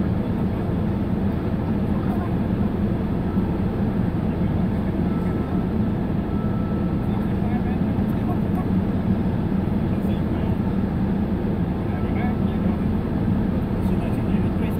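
A car engine idles with a steady low rumble, heard from inside the car.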